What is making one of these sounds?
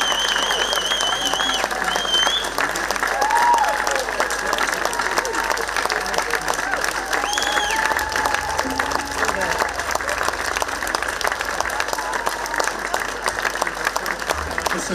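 A live folk band plays a lively tune outdoors.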